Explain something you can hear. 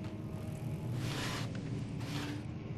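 A wooden lid creaks open.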